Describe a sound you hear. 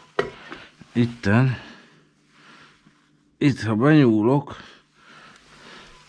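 A metal stove grate clanks as it is pulled out.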